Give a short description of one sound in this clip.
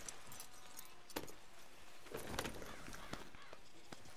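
A rider climbs into a creaking leather saddle.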